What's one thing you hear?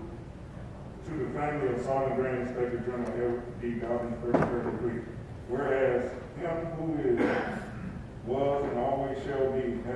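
A man speaks slowly and solemnly through a microphone in an echoing hall.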